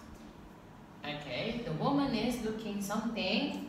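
A young boy speaks into a microphone.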